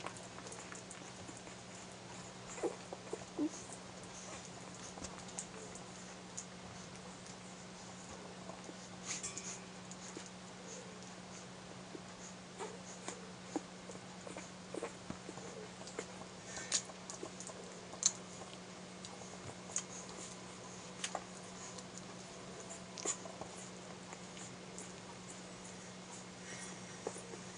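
Newborn puppies suckle with soft wet smacking sounds.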